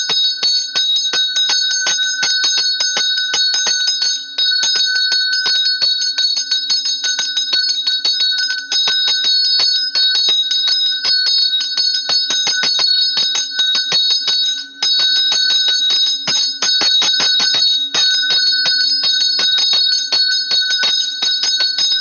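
A hand bell rings rapidly and steadily throughout.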